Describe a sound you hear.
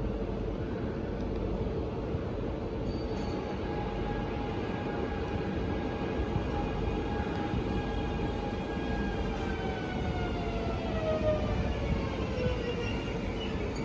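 An electric train's motors whine and slide down in pitch as the train slows to a stop.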